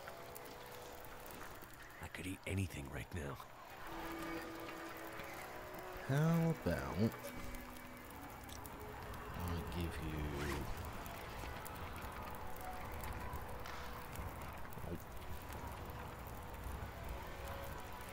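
A campfire crackles and hisses.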